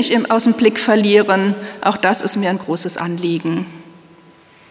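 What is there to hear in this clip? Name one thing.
A woman speaks calmly into a microphone in a large echoing room.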